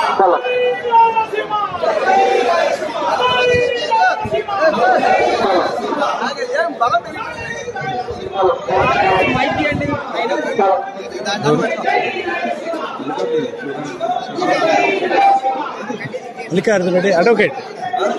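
A crowd of men talks and shouts close by, with several voices overlapping.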